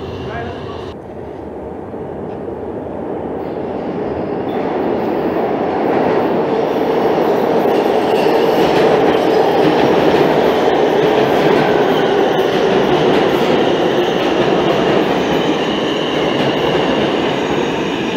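A subway train rolls into an echoing station with a loud, rising rumble.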